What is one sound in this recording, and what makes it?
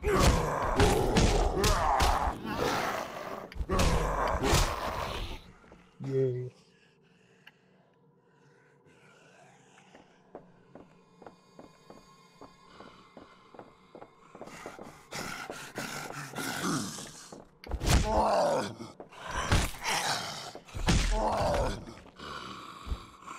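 A zombie snarls and groans close by.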